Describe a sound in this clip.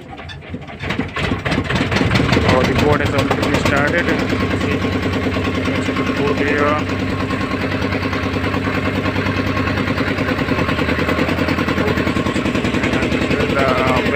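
A boat engine drones steadily close by.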